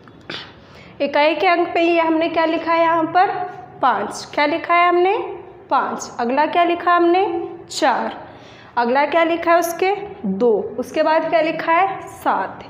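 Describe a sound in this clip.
A young woman speaks clearly and with animation, close by.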